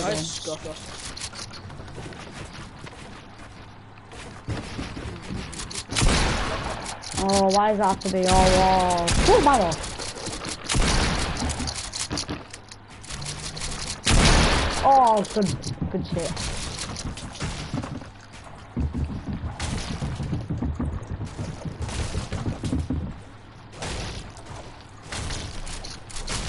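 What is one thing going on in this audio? Rapid knocks and thuds of building in a video game sound again and again.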